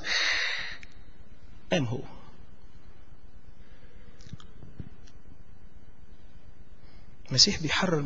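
A middle-aged man preaches with animation into a microphone, with long pauses.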